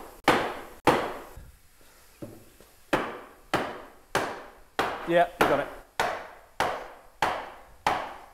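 A mallet strikes wood with sharp, ringing knocks at a steady pace.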